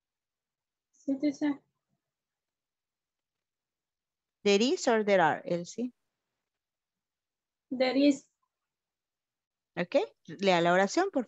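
A woman speaks calmly in short phrases over an online call, with pauses between them.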